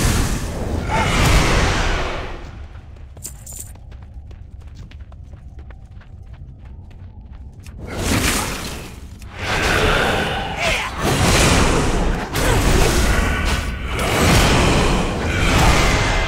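Magic spells whoosh and crackle in a game fight.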